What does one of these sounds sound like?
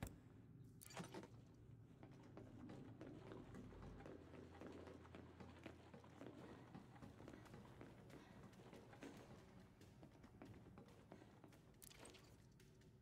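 Footsteps thud quickly across a metal floor.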